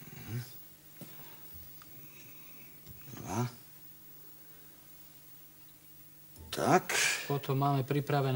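A spoon scrapes and clinks against a bowl.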